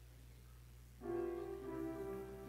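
A piano plays in a large room.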